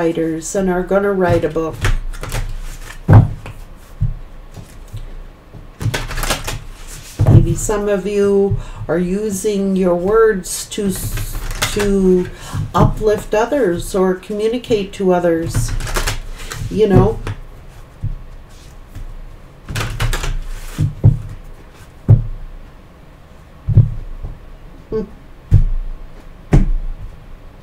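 Cards shuffle and tap in a woman's hands.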